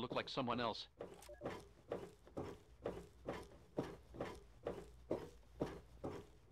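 Footsteps tread at a steady walking pace on a hard floor.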